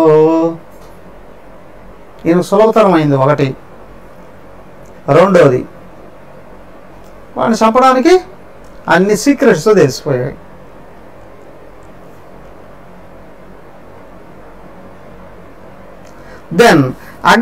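A man speaks calmly and slowly into a close microphone, with long pauses.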